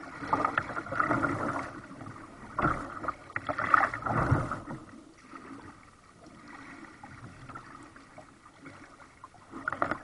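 Water laps and splashes gently against the hull of a kayak.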